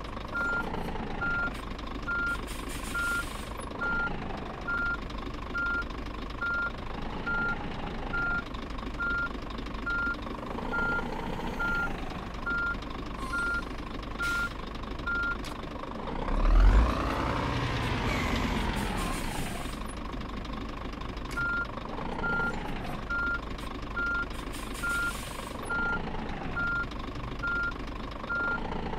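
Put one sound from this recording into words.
A diesel truck engine idles and rumbles.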